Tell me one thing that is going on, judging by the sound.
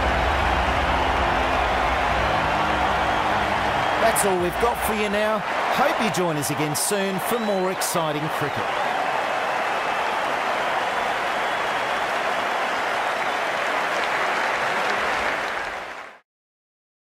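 A large crowd roars and cheers in a stadium.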